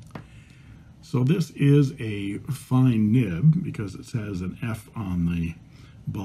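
A pen nib scratches lightly across paper.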